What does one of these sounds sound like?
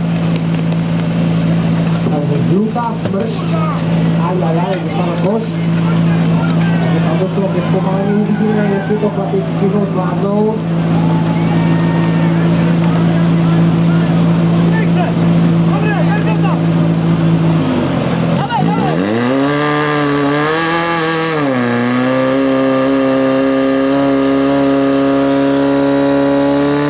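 A pump engine runs with a steady drone, then revs up higher and roars.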